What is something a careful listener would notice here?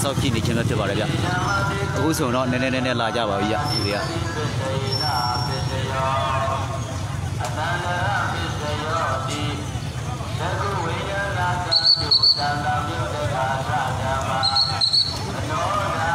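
Motorbike engines idle and rumble nearby.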